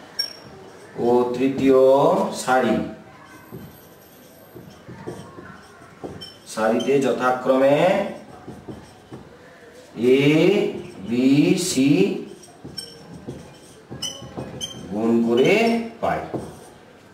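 A man speaks calmly in short phrases, as if explaining.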